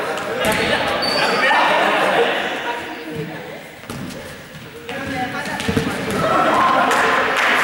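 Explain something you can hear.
Young people shout and chatter in a large echoing hall.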